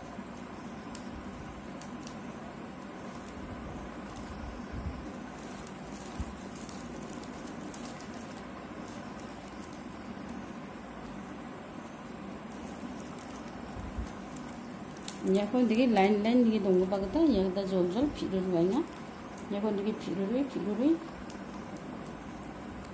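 Plastic strips rustle and crinkle as they are woven by hand.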